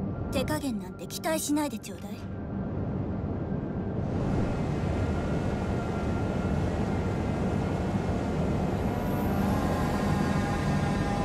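A large ship's engine rumbles steadily.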